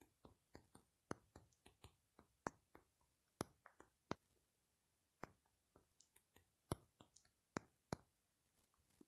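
Keys tap softly on a phone keyboard in quick, uneven bursts.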